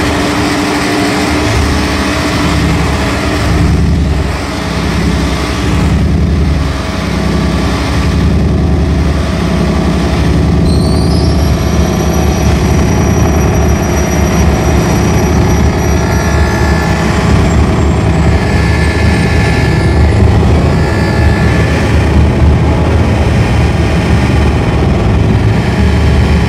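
Loud electronic drones throb and pulse, with high tones sliding in and out.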